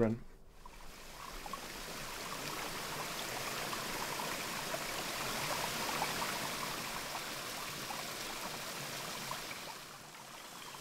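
Water rushes and splashes down a wooden channel.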